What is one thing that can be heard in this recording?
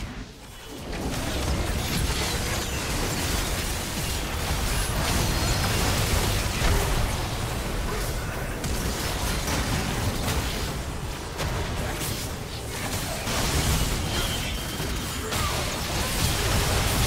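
Game spell effects and impacts clash loudly in a busy battle.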